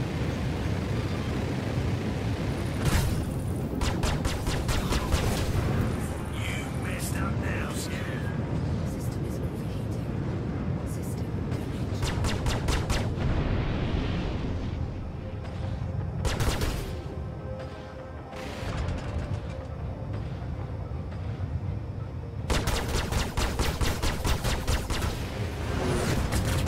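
Laser cannons fire in rapid bursts of sharp zaps.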